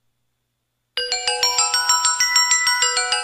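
An electronic keyboard plays a quick run of bright notes.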